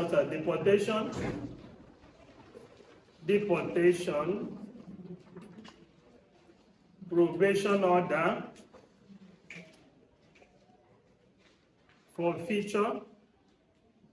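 A middle-aged man speaks calmly in short phrases with pauses, close by.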